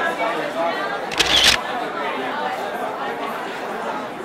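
A crowd of young children chatter and call out in an echoing hall.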